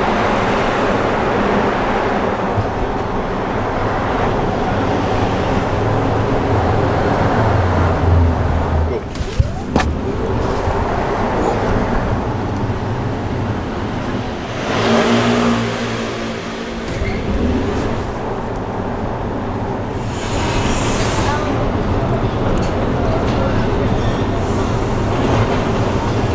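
Tyres roar on a road, heard from inside an electric car.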